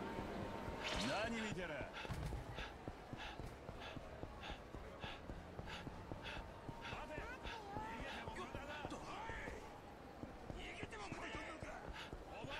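Quick footsteps run over pavement.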